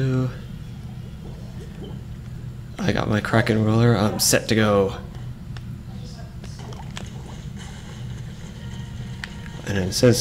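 Liquid ink splashes and squelches.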